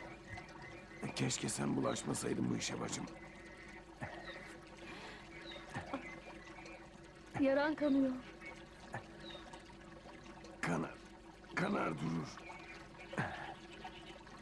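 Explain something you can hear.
A young woman speaks softly and anxiously close by.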